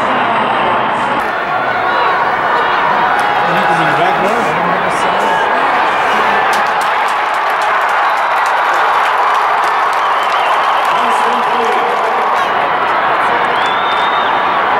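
A crowd cheers and roars in a large echoing arena.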